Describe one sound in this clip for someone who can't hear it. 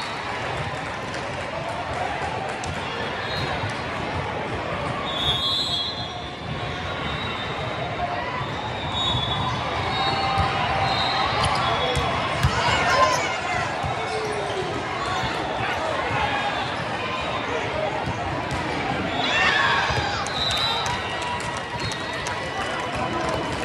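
A crowd chatters and cheers, echoing through a large hall.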